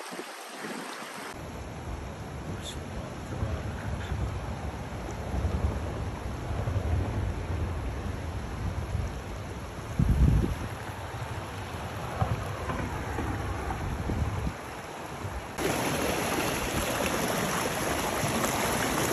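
Muddy floodwater rushes over rocks with a steady roar.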